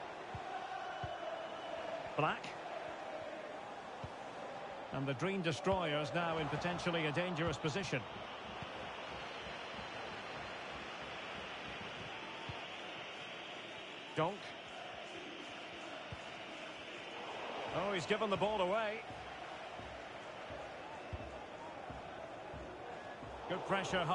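A stadium crowd murmurs steadily throughout.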